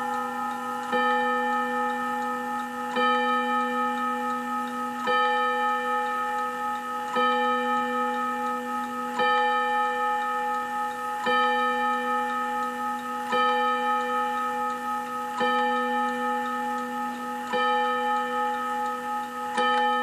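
A clock chime strikes slowly and evenly, and each stroke rings on until the next.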